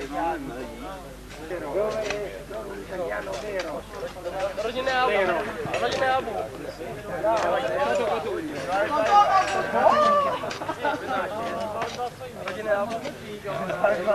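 Several men talk outdoors, close by.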